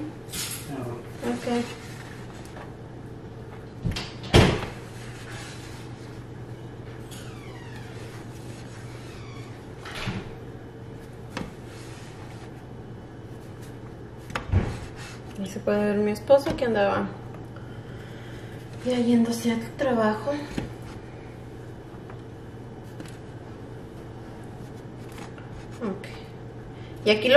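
Pieces of bread are set down with soft taps on a metal tray.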